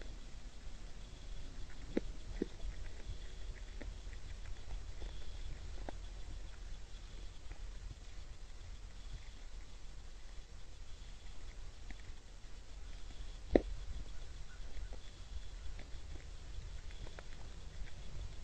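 A deer crunches on scattered corn close by.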